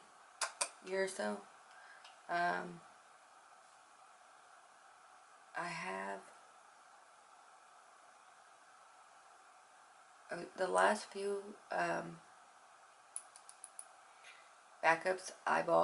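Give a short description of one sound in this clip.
A young woman speaks calmly and close by, in short bursts with pauses.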